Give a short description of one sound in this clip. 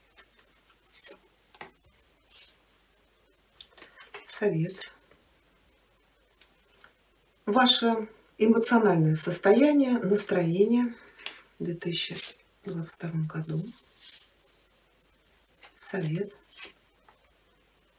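Cards slide and tap softly as they are laid down.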